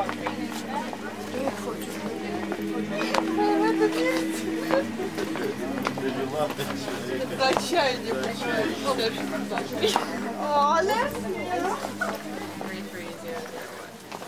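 Footsteps shuffle on a stone floor.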